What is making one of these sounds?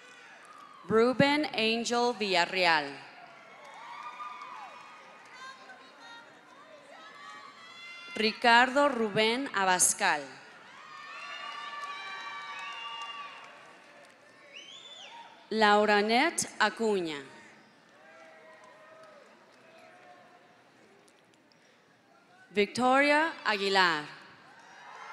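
A crowd cheers and whoops loudly in a large echoing hall, in short bursts.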